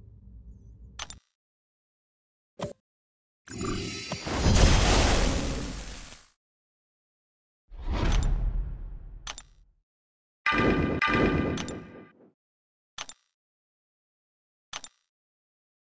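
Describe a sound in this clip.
Short clicking tones sound now and then.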